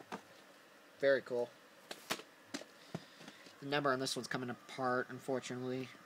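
A plastic tape case clicks and rattles as a hand handles it.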